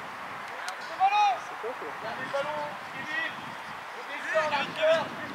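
Young players shout across an open field.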